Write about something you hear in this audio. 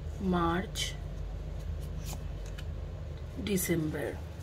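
Cards riffle and slide against each other as a deck is shuffled.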